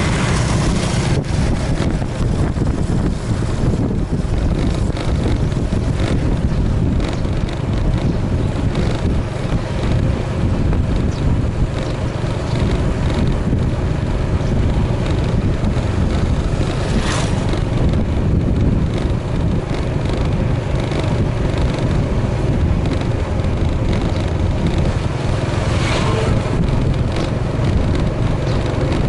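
Wind buffets loudly and steadily past a moving rider.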